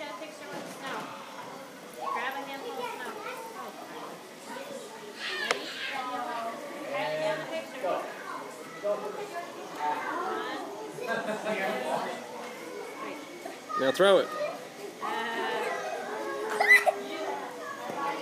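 Young girls chatter and squeal excitedly nearby.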